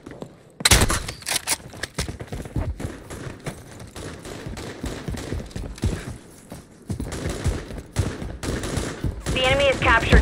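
Footsteps thud quickly on hard ground.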